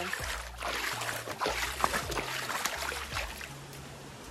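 Water splashes and trickles as a hand sweeps through a pool.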